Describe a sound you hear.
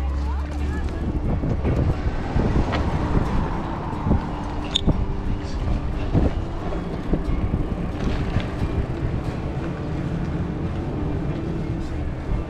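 Wind rushes past close by.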